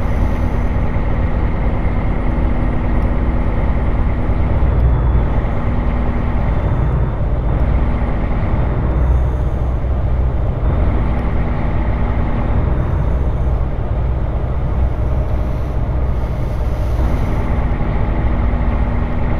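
Tyres roll and crunch over a rough gravel road.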